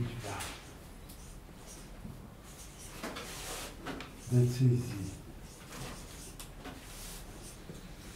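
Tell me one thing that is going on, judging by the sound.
A marker squeaks on a board while writing.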